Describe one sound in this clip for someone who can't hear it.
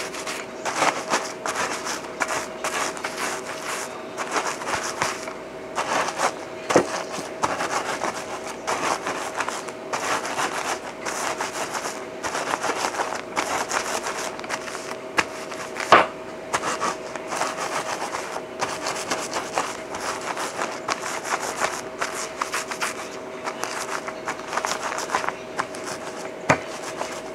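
A rolling pin crunches over crumbs in a plastic bag.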